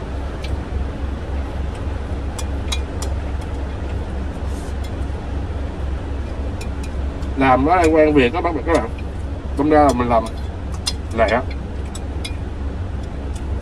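A fork clicks against a plastic container.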